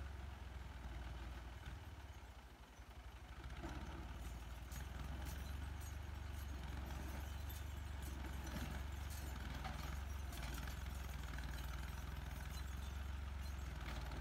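A tractor engine idles with a low, steady rumble.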